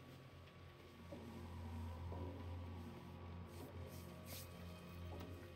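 A heater hums low and steady.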